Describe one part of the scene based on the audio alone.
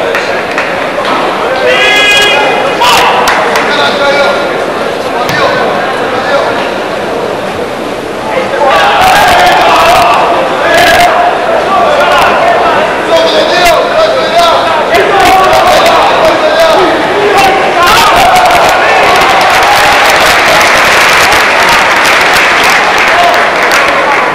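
A large crowd murmurs and cheers in an echoing hall.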